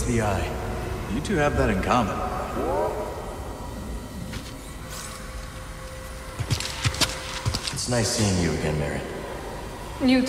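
A young man talks calmly.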